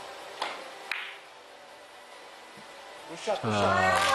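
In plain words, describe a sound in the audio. Billiard balls knock together.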